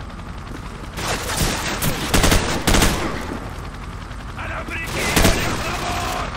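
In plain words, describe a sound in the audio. A rifle fires loud bursts of shots.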